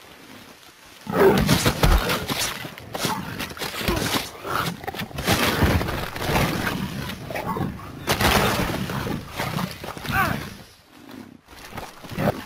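Big cats snarl and roar as they fight.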